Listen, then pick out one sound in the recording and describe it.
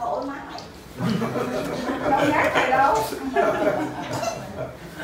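Several people talk at once nearby.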